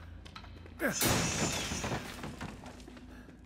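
A wooden crate cracks and splinters apart.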